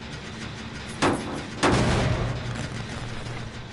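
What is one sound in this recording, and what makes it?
A machine is struck with a loud metallic clang and sputters.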